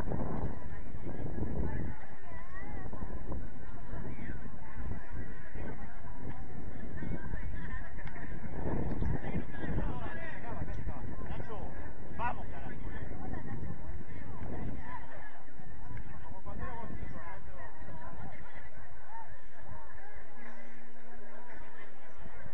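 Young men and women call out to each other across a field, heard from a distance.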